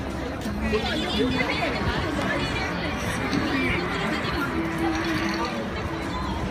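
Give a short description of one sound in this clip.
Footsteps shuffle on pavement as a crowd walks.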